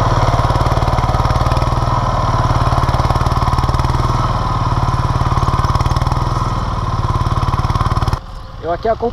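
A walk-behind tiller engine runs with a steady low drone.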